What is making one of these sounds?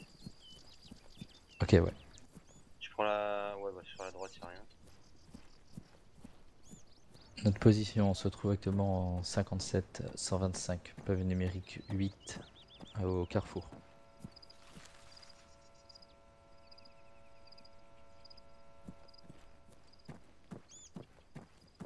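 Footsteps tread through grass and over dirt.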